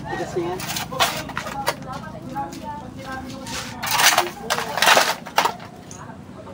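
A hoe strikes and scrapes packed dirt.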